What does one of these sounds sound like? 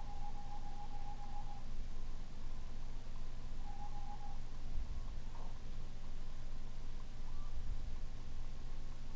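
A racing car engine hums steadily in a video game.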